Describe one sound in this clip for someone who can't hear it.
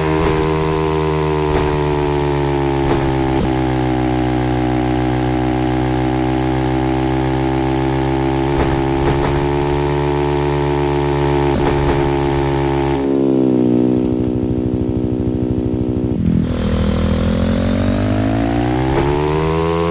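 A motorcycle engine drones steadily, then drops to an idle and revs back up.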